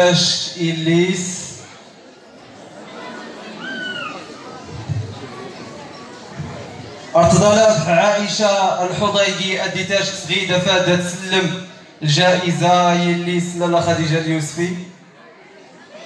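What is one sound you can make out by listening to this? A man speaks loudly through a microphone and loudspeakers in an echoing hall.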